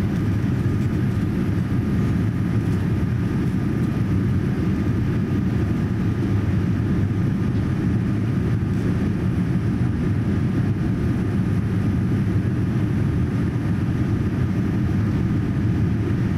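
An airplane's engines roar in a steady, deep drone inside the cabin.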